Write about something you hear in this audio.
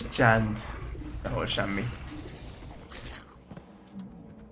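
A man talks calmly into a nearby microphone.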